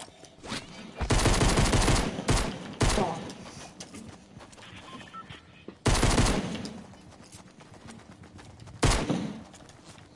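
Gunshots crack loudly in quick bursts.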